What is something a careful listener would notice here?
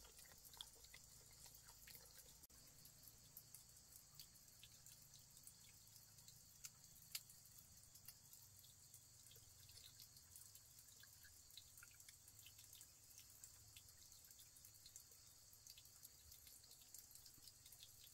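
Small clicks and taps come from hands working with an object over a bowl.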